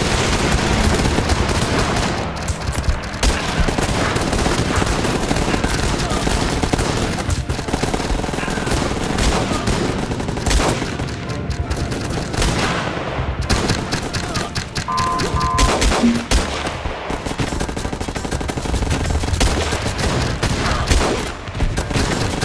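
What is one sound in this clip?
Explosions boom and crackle over a fire that keeps burning.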